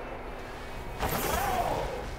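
A bright sparkling chime rings out with a whoosh.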